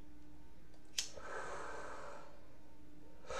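A lighter clicks and its flame hisses briefly.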